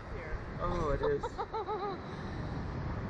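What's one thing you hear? A woman screams and laughs up close.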